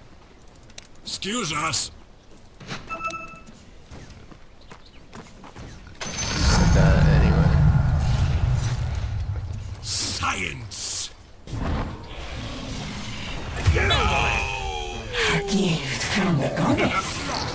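Battle sounds of magic blasts and clashing weapons burst out in loud bursts.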